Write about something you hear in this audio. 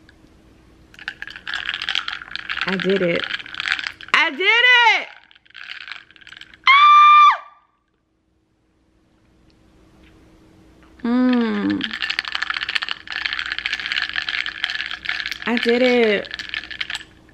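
Ice rattles and clinks as a straw stirs a drink.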